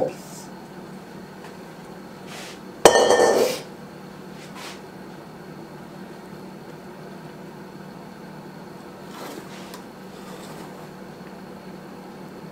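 A spatula softly scrapes and spreads thick batter in a pan.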